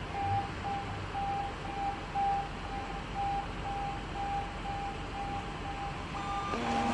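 An ambulance's reversing alarm beeps steadily.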